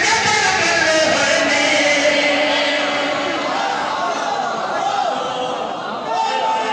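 A young man chants loudly through a microphone and loudspeakers in a large echoing hall.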